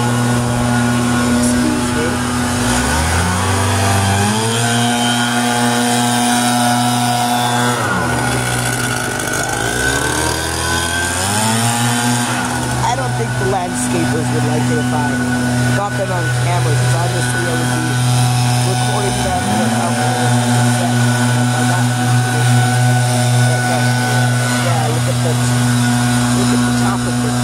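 An outdoor air conditioner's fan motor hums loudly and steadily, its pitch sliding down and climbing back up a few times.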